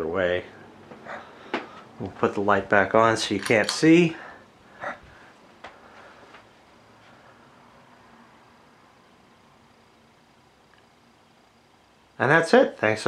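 A ceiling fan whirs with a soft, steady hum.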